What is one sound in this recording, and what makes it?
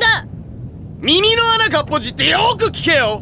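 A man shouts a loud taunt.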